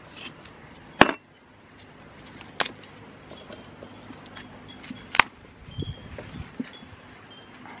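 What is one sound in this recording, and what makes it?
Hands rub and pat a rough concrete surface.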